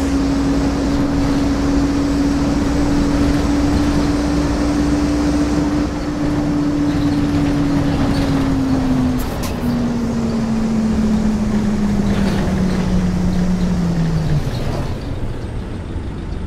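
Bus tyres roll over a road.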